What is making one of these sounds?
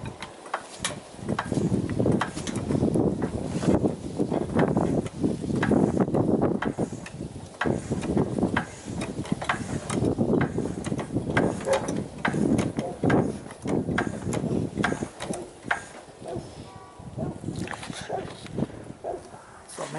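A hydraulic jack is pumped with a creaking, clicking handle.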